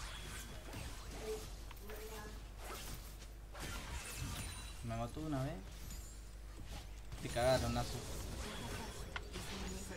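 Fantasy combat sounds and spell effects crackle and clash.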